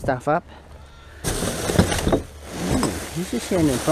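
A bag of rubbish thumps into a plastic bin.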